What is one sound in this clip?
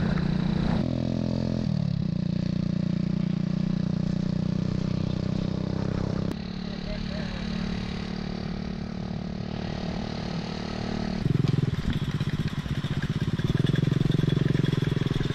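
A motorbike engine hums steadily as the bike rides along.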